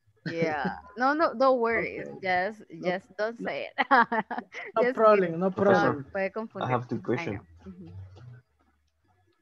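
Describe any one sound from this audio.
A young woman talks with animation over an online call.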